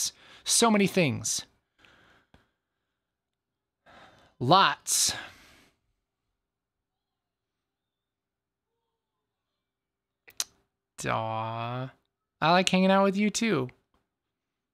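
A young man speaks calmly and close into a microphone, with pauses.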